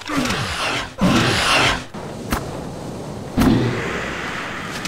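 A magic spell whooshes and crackles loudly.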